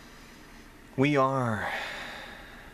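A young man close by lets out a short, low groan that falls in pitch.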